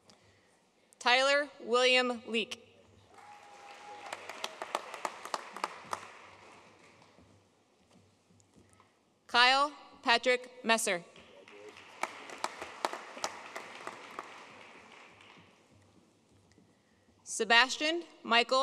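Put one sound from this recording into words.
A woman reads out names through a microphone in a large hall.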